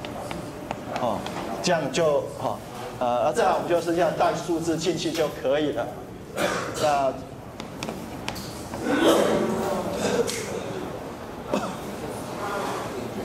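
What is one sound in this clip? A man lectures with animation.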